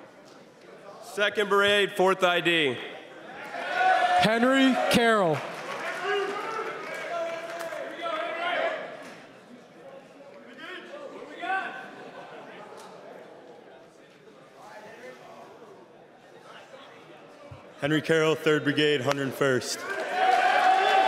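A young man announces loudly through a microphone and loudspeakers in a large echoing hall.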